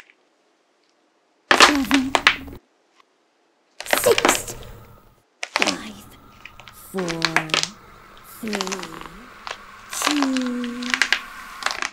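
Fingers press and crack a hardened clay shell.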